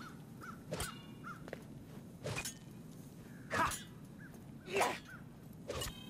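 A raven caws in short harsh bursts.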